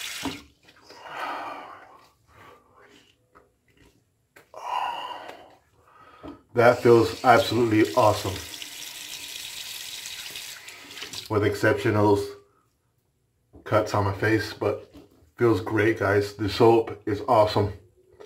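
Hands rub and pat over skin.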